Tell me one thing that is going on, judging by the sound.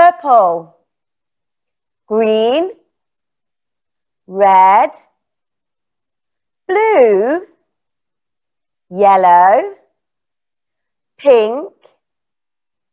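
A woman speaks clearly over a microphone in short phrases with pauses.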